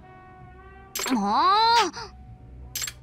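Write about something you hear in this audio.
A young woman growls playfully through a loudspeaker.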